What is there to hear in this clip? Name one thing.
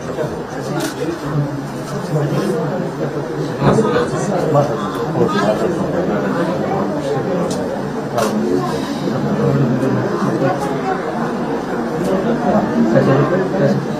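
An elderly woman speaks tearfully and with emotion, close by.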